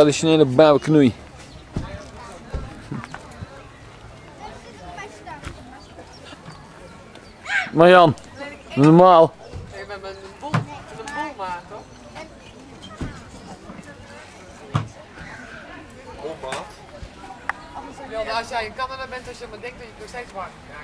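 Adults and children chatter at a table nearby.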